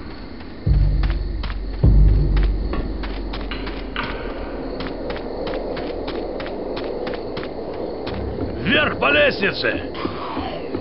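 Footsteps tap quickly and steadily on hard ground and wooden boards.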